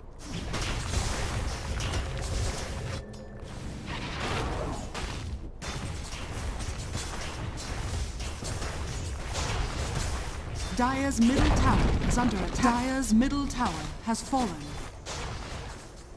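Magic blasts and weapon strikes crackle and boom in a fast battle.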